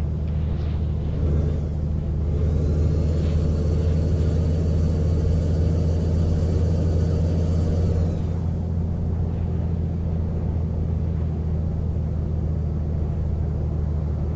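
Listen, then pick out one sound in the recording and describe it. A truck engine rumbles steadily as it drives along a highway.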